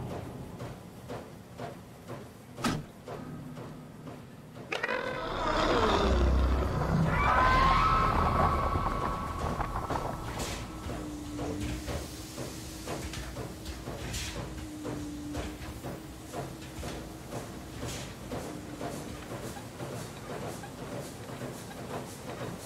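Footsteps clang on a metal grating floor.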